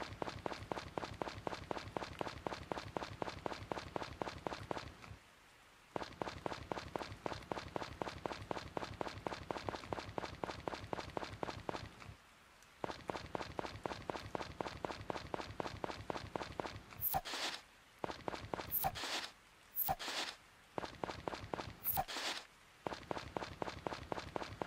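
Quick footsteps patter along a path.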